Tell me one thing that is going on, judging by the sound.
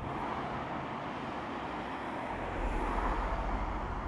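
Cars drive past through an echoing underpass.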